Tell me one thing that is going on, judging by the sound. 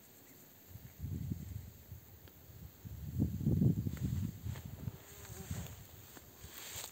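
Wind gusts in low rumbles outdoors.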